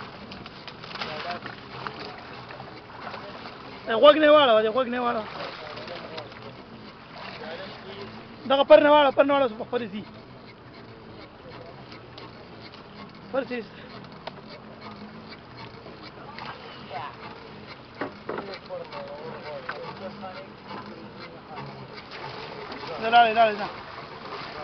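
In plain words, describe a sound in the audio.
Water splashes beside a boat's hull.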